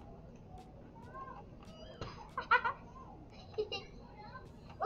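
A young girl talks with animation close to a microphone.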